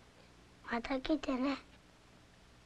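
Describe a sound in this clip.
A child speaks up in a high, lively voice close by.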